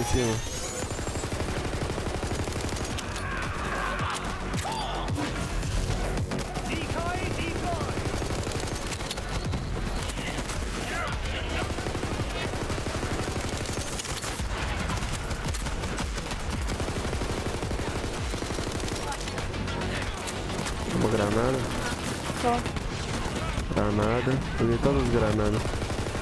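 Gunfire from a video game rattles and booms steadily.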